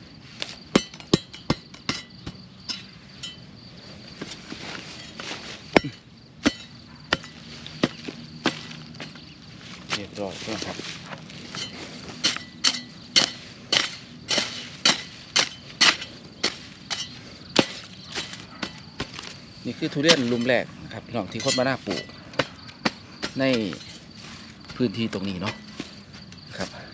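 A hoe chops into dry soil again and again.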